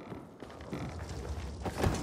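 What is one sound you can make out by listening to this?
A fire crackles in a metal barrel.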